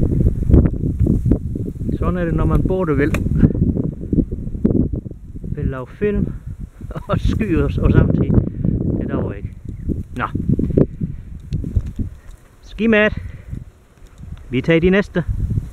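Tall dry grass rustles close by.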